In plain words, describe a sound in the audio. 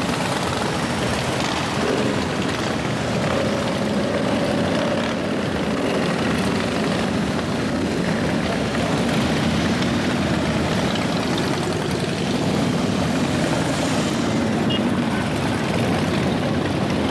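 A long line of motorcycles rumbles past close by, engines throbbing loudly.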